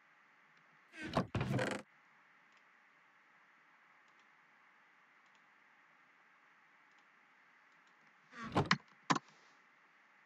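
A wooden chest lid creaks as it opens and shuts.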